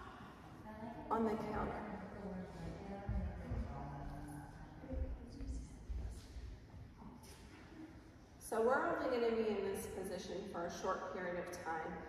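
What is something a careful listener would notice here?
A woman speaks with animation in an echoing room.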